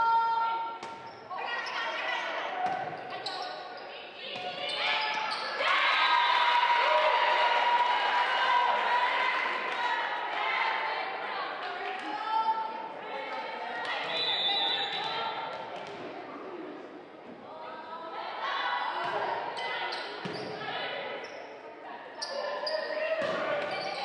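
A volleyball is struck with sharp smacks.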